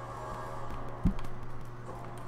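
A heavy squelching thud sounds once.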